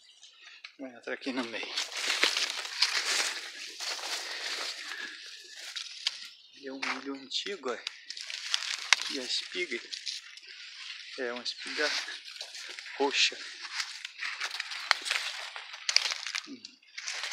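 Leaves rustle and brush past close by.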